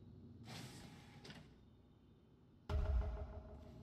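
An elevator door slides shut with a heavy thud.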